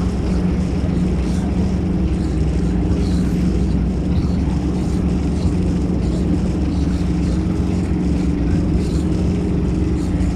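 A boat's engine hums steadily at low pitch.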